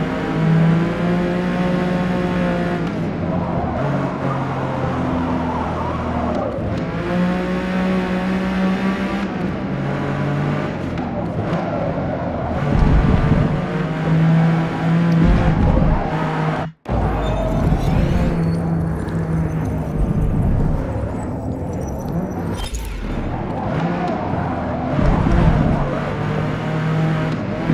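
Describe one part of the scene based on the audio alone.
A racing car engine roars, revving up and dropping sharply with each gear change.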